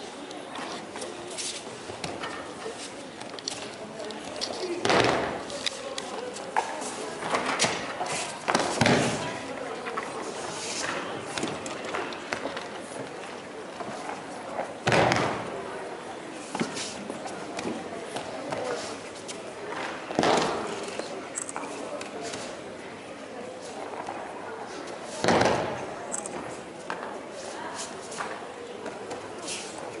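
Bare feet shuffle and slide across a mat.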